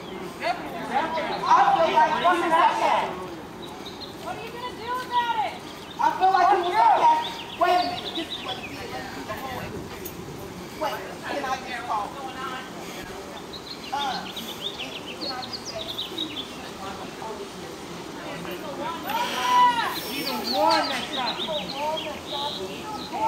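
A group of men and women shout and chant loudly outdoors, a short way off.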